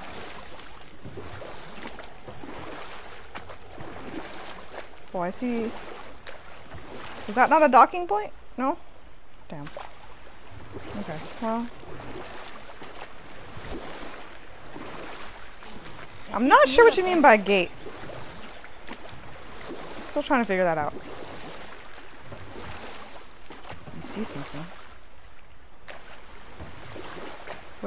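Oars splash steadily through the water.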